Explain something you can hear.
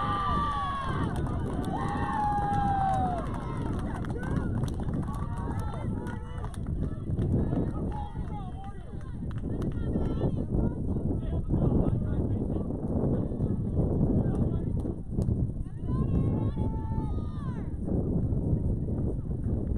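Young players shout and call out across an open field.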